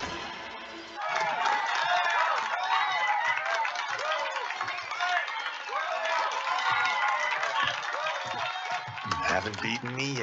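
A crowd cheers enthusiastically.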